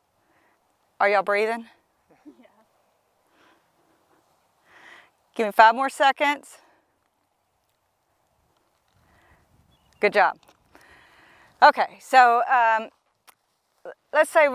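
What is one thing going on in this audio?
A young woman speaks calmly and clearly, close to a microphone, in short bursts.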